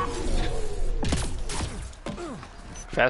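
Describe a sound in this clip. Footsteps clang on a metal ramp.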